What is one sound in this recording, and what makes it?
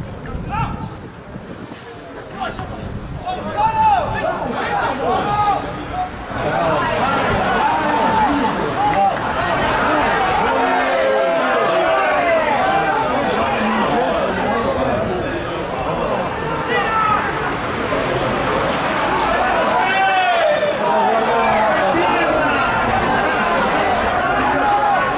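A crowd of spectators shouts and chants from the stands.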